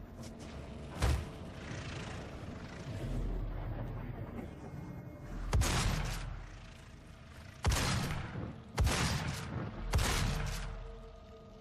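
A shotgun fires loud, booming blasts with a short echo.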